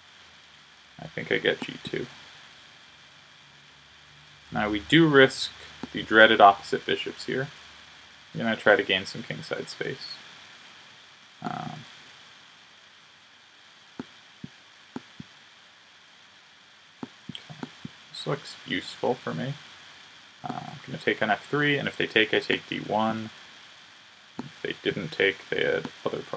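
A young man talks with animation close to a microphone, in quick bursts with pauses.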